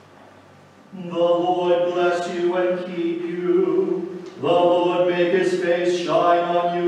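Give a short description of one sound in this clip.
A man chants loudly in an echoing hall.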